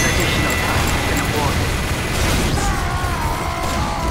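Explosions boom in a video game.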